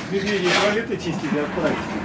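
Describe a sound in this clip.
A shovel scrapes and scoops muck off a hard floor.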